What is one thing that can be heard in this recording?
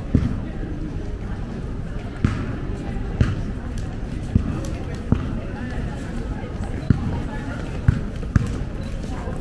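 Footsteps thud on pavement outdoors.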